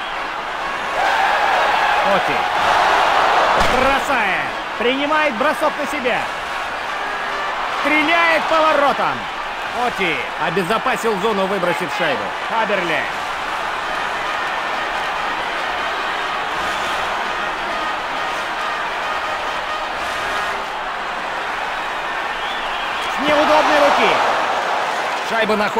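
An arena crowd roars and cheers.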